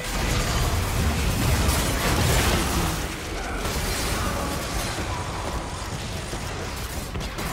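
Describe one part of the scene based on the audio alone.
Video game spell effects whoosh and crash in a busy fight.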